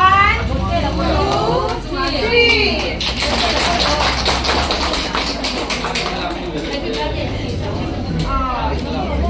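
A young woman speaks and laughs close by.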